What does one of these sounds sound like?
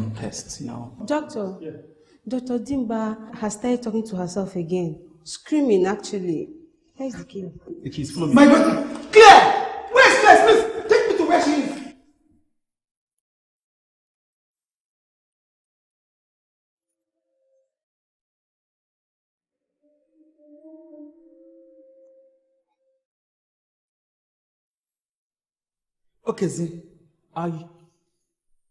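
A middle-aged woman speaks tensely, close by.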